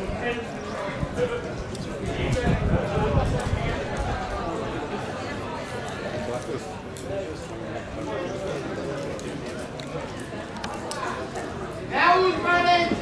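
Men call out faintly in the distance.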